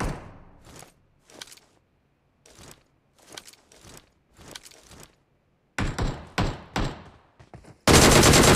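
Footsteps thud quickly on grass and a road.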